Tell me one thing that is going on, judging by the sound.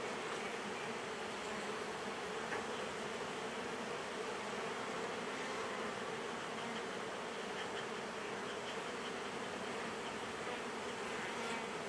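Many bees buzz steadily close by.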